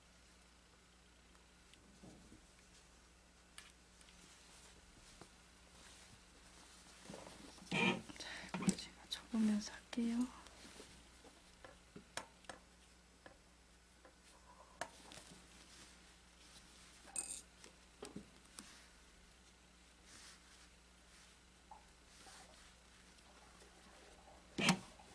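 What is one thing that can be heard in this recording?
Fabric rustles and crumples as hands handle it.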